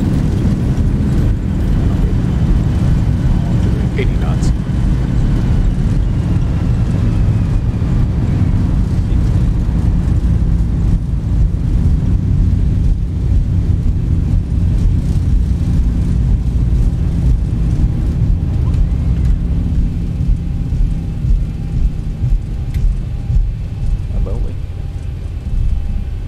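Wheels rumble over a runway.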